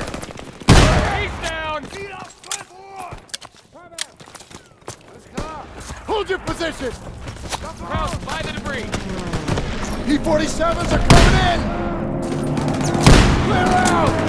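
A shotgun fires with loud blasts.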